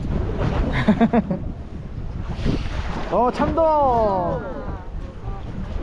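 A young woman exclaims excitedly nearby.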